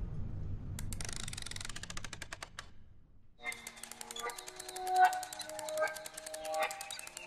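Water drips into a pond.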